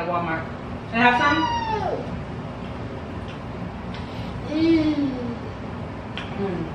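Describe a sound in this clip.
A small child babbles.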